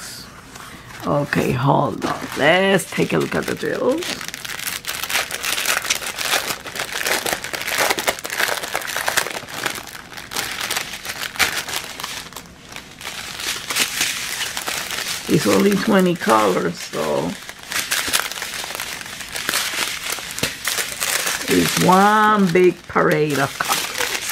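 Plastic packets crinkle and rustle as hands handle them.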